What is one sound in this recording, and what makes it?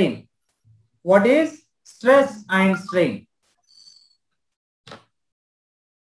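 A man speaks calmly into a microphone, explaining in short phrases.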